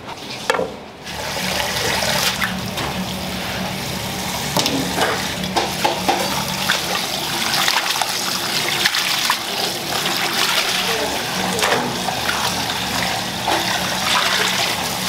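Tap water splashes steadily into a metal sink.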